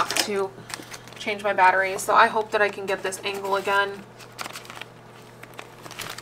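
Plastic sleeves in a binder rustle and crinkle.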